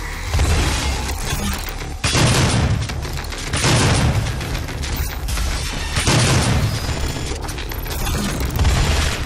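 Heavy guns fire in loud booming blasts.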